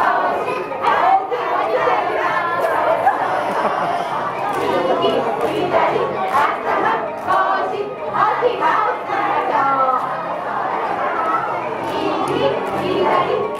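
A crowd of people chatters and laughs in a large echoing hall.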